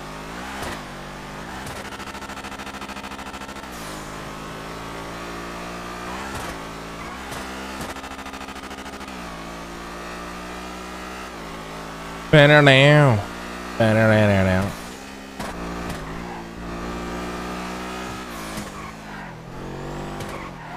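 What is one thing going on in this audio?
A sports car engine hums steadily and shifts gears as it speeds along a road.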